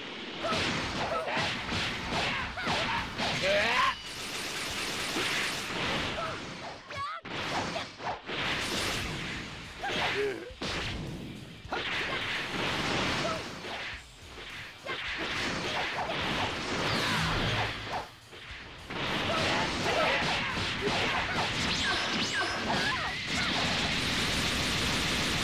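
Punches and kicks thud in rapid hits.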